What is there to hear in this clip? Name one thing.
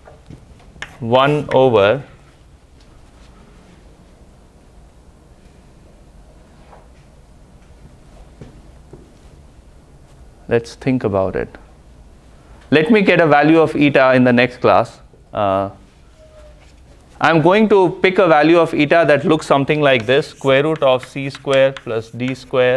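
A man lectures with pauses, heard in a large room.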